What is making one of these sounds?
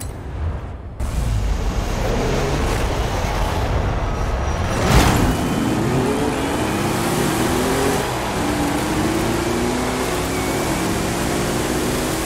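A truck engine revs and roars, rising in pitch as it speeds up.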